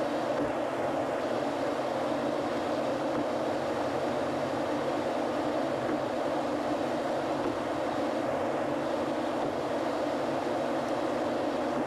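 Tyres roll steadily on a smooth road, heard from inside a moving car.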